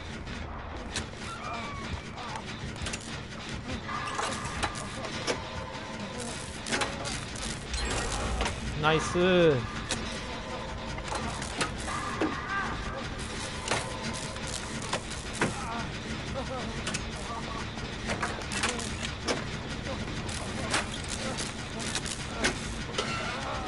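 Metal parts clank and rattle as a machine is worked on.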